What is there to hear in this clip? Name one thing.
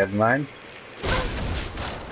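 A bowstring snaps as an arrow is loosed and whooshes away.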